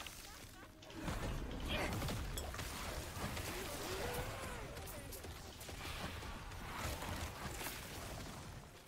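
Game spells and hits crackle and whoosh in quick bursts.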